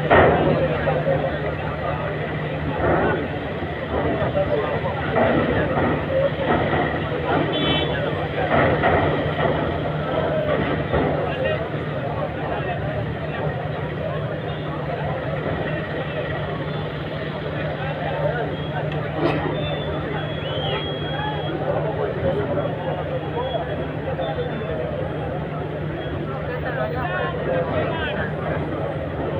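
A large crowd of men and women chatters loudly all around, outdoors.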